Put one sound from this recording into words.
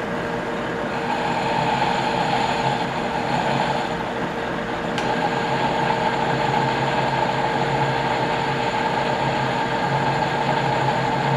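A cutting tool scrapes against a spinning workpiece with a rough hiss.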